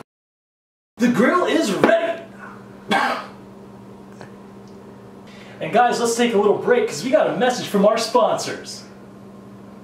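A young man talks cheerfully and laughs close by.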